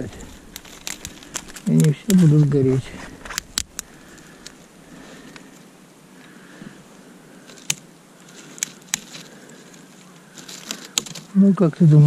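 A knife whittles shavings from dry branches.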